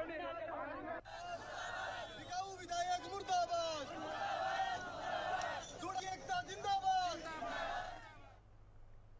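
A man shouts with animation to a crowd outdoors.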